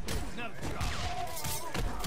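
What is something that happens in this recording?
Fire bursts with a roar.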